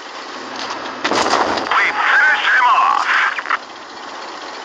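A shell explodes with a loud, rumbling boom.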